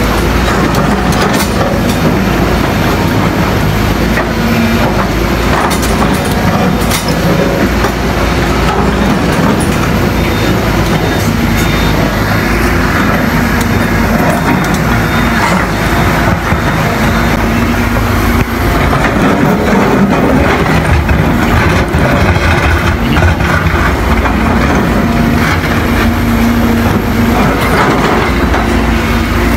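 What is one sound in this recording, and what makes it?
A diesel excavator engine works under load.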